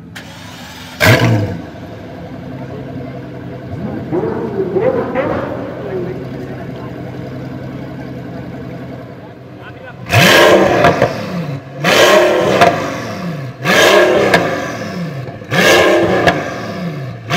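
A supercar engine revs sharply in loud, repeated bursts.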